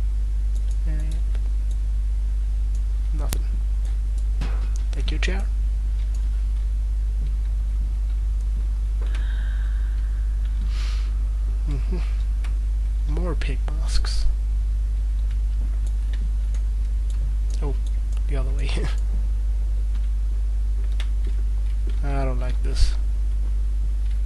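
A young man talks now and then into a microphone, close and casual.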